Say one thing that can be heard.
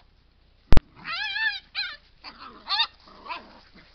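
A dog whines in high, yelping cries.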